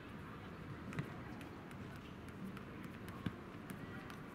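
A football thuds as a player kicks it.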